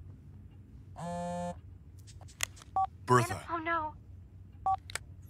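A phone rings with a short electronic tune.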